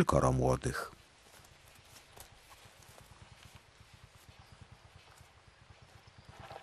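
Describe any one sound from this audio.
Hedgehogs rustle softly in dry bedding.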